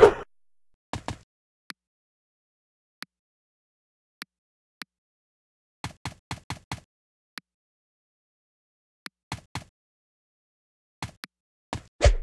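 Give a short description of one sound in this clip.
Soft menu clicks tick now and then.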